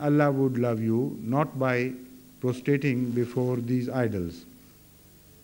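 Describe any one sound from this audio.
A man speaks loudly and with animation, then falls silent.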